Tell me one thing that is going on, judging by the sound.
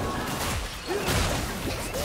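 A fiery explosion booms.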